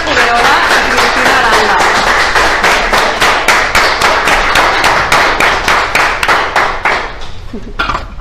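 A group of people clap loudly.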